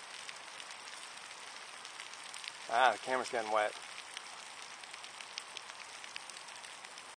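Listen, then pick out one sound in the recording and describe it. Water sprays and hisses steadily from a shower head.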